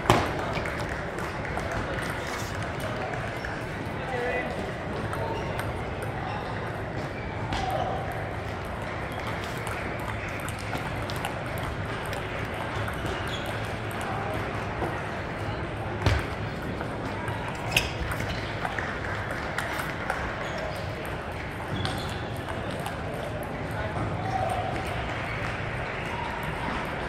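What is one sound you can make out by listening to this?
A large echoing hall murmurs with a distant crowd.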